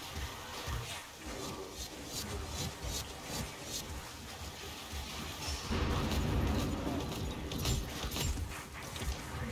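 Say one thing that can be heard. Rain hisses steadily.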